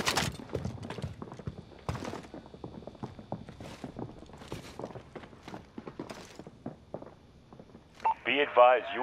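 Footsteps thud on a wooden floor and stairs.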